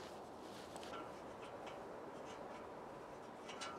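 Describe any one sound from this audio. A small metal tool scrapes and ticks against metal.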